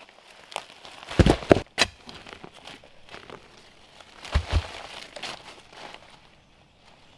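Dry leaves rustle as a bundle is dragged over the ground.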